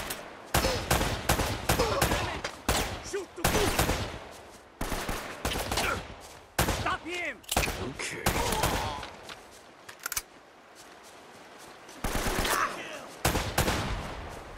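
Pistol shots ring out in quick, repeated bursts.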